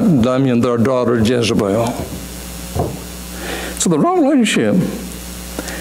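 An elderly man preaches with emphasis through a microphone in a large echoing hall.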